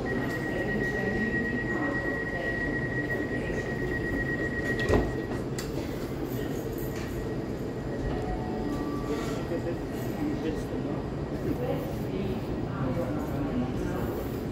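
Footsteps walk along a hard platform.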